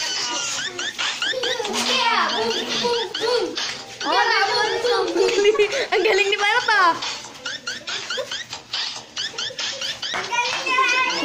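Bare feet stamp and shuffle on a hard floor.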